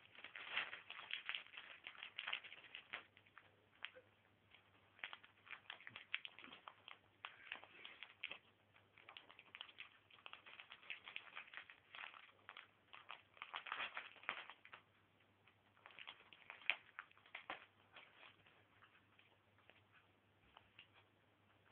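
A dog chews and gnaws noisily on a toy up close.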